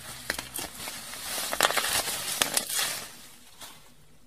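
Bubble wrap crinkles and rustles between hands.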